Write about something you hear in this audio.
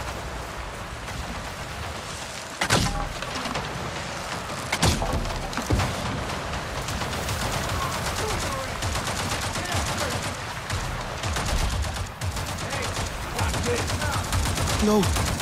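Leaves and undergrowth rustle underfoot.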